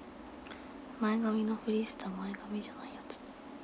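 A young woman speaks briefly and softly, close to a microphone.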